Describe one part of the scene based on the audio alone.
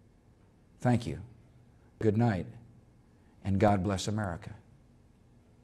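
A middle-aged man speaks calmly and formally into a microphone in short phrases.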